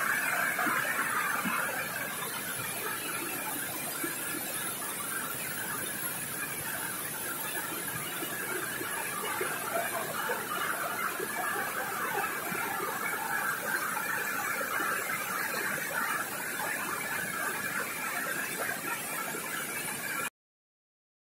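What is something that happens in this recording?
Rapids roar and churn loudly, close by, outdoors.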